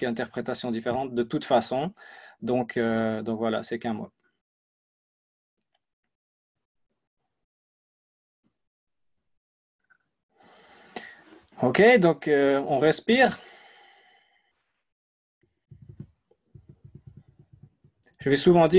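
A young man speaks calmly and close to a microphone, with pauses.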